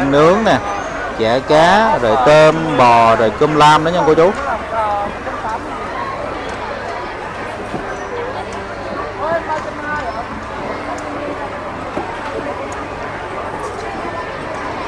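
A crowd chatters all around in a busy, noisy space.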